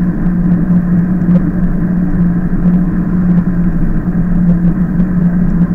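Tyres hum steadily on smooth asphalt.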